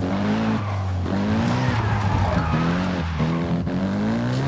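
Tyres screech as a car slides sideways on the road.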